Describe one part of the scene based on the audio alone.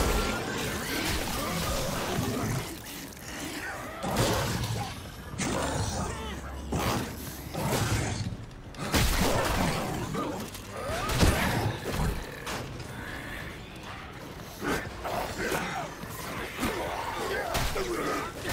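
Metal blades slash and strike into flesh with heavy impacts.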